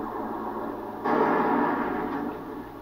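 An explosion booms from a video game through a television speaker.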